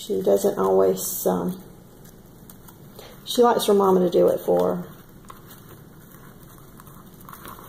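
Dry moss rustles and crackles under pressing fingers.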